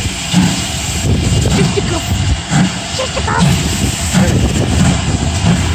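Railway carriages rumble and clank over the rails.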